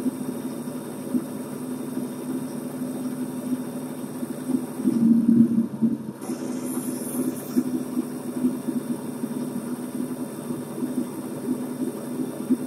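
A truck engine hums with a low, steady drone.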